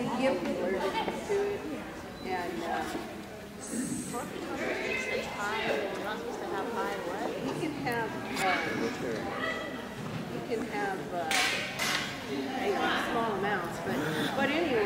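A woman calls out commands to a dog with animation in a large echoing hall.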